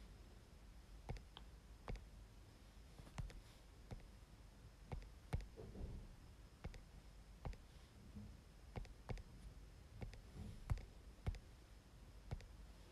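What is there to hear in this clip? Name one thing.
A phone's keyboard clicks softly with each key press.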